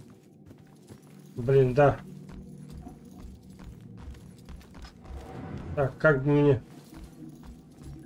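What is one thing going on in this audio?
Slow footsteps tread on a floor.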